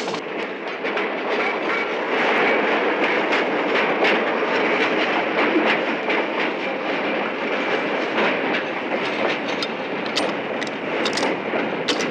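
Metal clanks and knocks as a man climbs a freight car.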